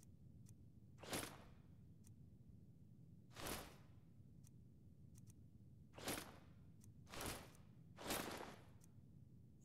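Soft whooshing menu sounds play now and then.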